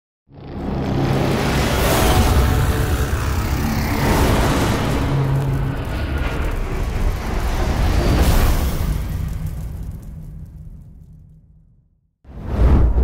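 A fiery blast roars and rumbles deeply.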